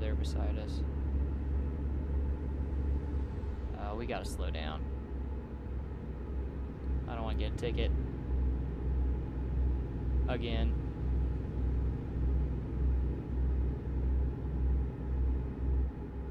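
A truck engine drones low and steady.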